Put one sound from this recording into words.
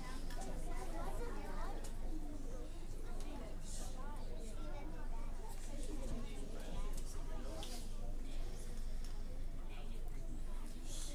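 A man talks calmly to a group.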